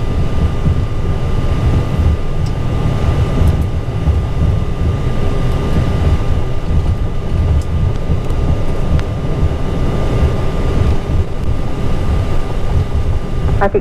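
Wheels rumble and thump over the runway surface.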